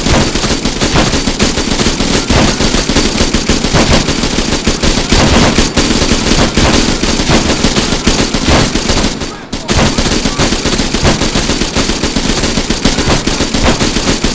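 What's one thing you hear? A machine gun fires long, rapid bursts.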